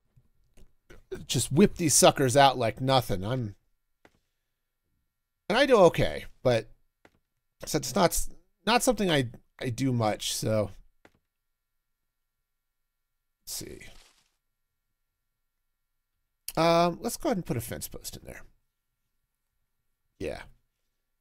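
A man talks with animation into a close microphone, in bursts with pauses.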